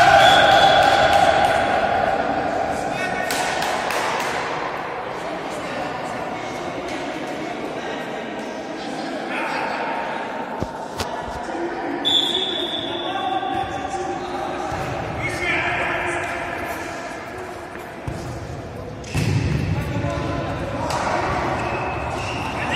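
Young men shout to each other across an echoing indoor hall.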